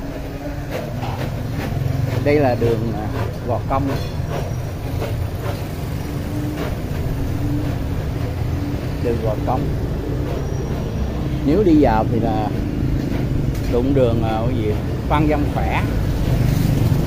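An elderly man talks calmly close to the microphone.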